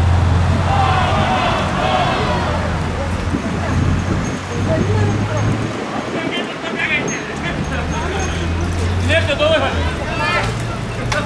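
A car engine hums as cars drive past nearby.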